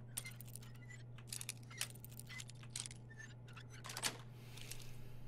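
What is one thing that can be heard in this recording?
A lock pin scrapes and clicks as it is picked.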